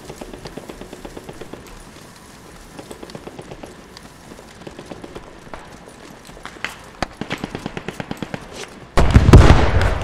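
Footsteps crunch steadily on grass and gravel.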